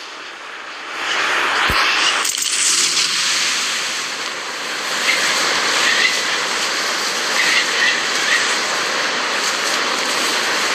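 Wind rushes loudly past a falling skydiver.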